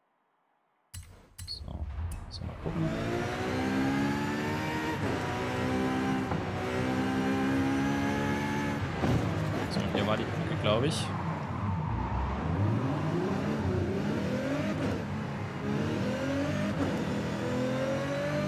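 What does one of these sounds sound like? A car engine roars, revving up and dropping with each gear change.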